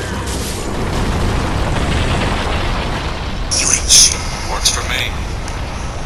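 A huge creature roars and rumbles.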